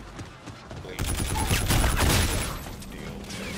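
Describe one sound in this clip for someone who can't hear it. An automatic rifle fires a burst of gunshots.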